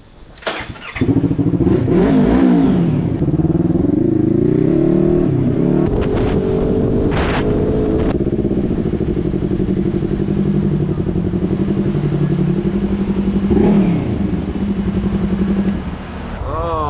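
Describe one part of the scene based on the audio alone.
A motorcycle engine rumbles steadily and revs.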